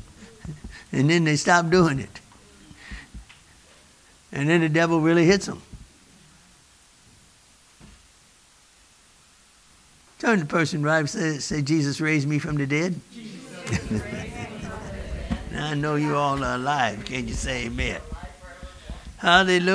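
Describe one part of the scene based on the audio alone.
A man preaches with animation through a microphone, in a large echoing room.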